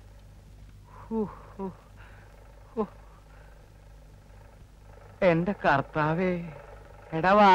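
A middle-aged man speaks nearby.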